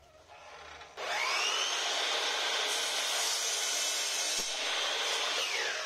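An electric saw whines loudly, spinning up and running steadily.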